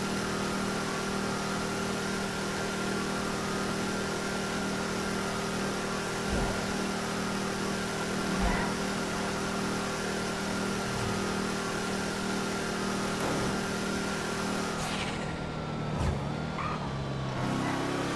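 A sports car engine drones as the car cruises along a road.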